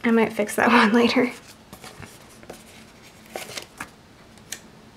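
Paper sticker sheets rustle and crinkle close by.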